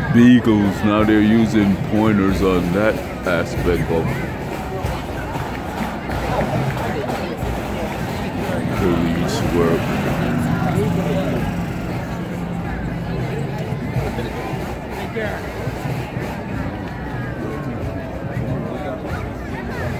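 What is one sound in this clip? A crowd of men and women chatters nearby outdoors.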